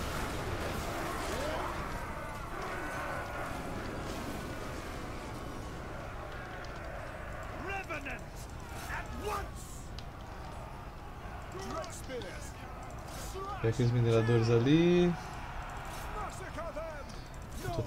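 Weapons clash and clang in a large battle.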